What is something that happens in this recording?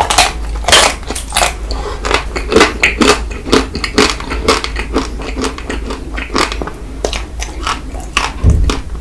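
A man bites into a crunchy chocolate-coated ice cream bar close to a microphone.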